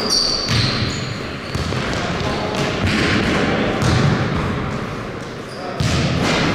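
Sneakers squeak sharply on the court.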